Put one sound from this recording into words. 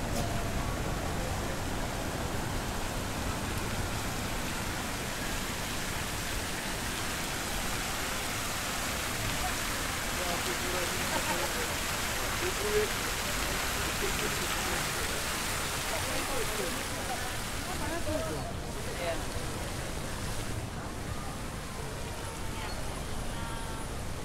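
A crowd of people chatters in the distance outdoors.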